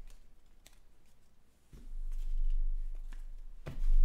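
A playing card slides off a soft mat.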